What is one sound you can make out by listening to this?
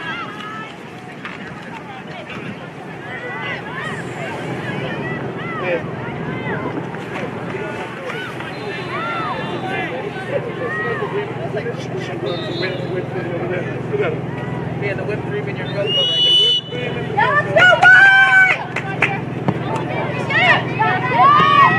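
A crowd of spectators chatters and calls out across an open field.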